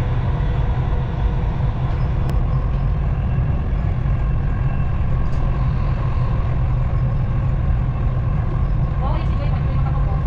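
A train hums and rumbles steadily along its tracks.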